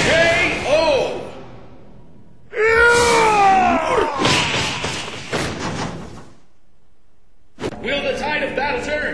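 Game sound effects ring out in short bursts.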